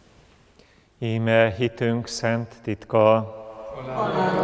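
A man chants in a deep voice through a microphone in a large echoing hall.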